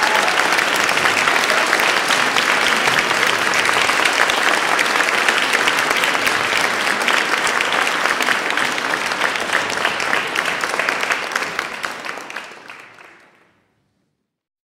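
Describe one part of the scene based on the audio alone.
An audience applauds in a large hall, then the applause fades out.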